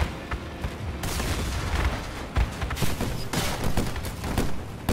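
Metal parts clatter and crash as a vehicle breaks apart.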